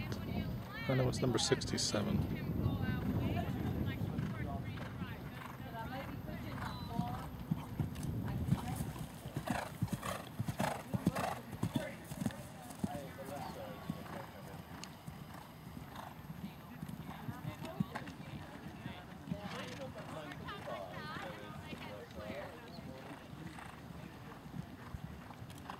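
A horse's hooves thud on soft dirt as it canters.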